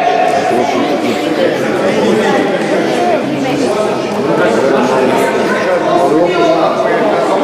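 Several voices chatter in the background.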